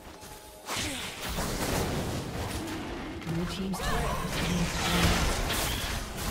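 Magic spells crackle and burst during a fantasy battle.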